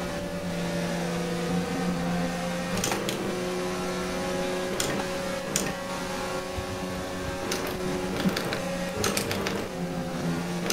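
A racing car engine roars at high, steady revs.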